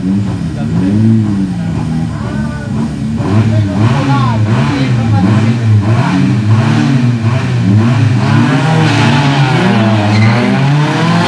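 A race car engine revs loudly in quick, repeated bursts.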